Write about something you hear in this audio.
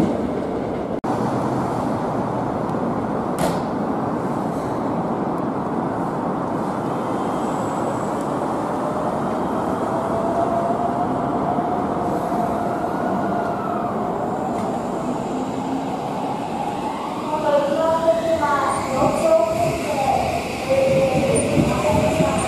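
A train rolls slowly in.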